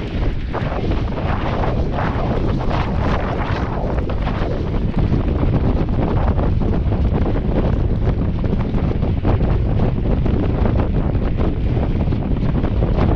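Wind rushes loudly over a microphone outdoors.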